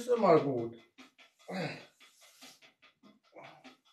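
Fabric rustles as a man pulls off a sweatshirt.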